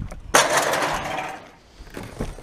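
A bin lid flips open with a thud.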